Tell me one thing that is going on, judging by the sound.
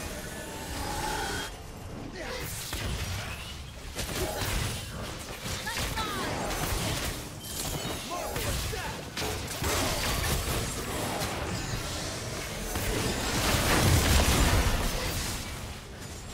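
Video game spells and attacks burst, whoosh and crackle in a fight.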